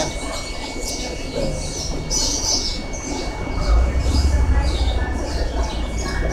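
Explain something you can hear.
Water bubbles steadily from an aquarium filter.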